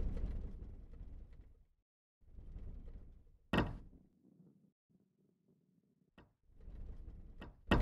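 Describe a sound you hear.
A heavy ball rolls along a wooden track with a low rumble.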